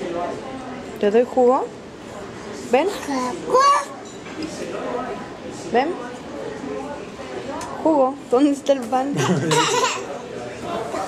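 A baby babbles and squeals up close.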